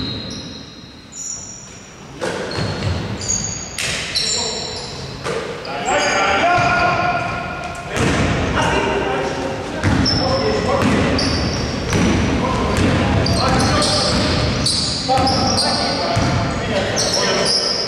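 Sneakers squeak sharply on a gym floor.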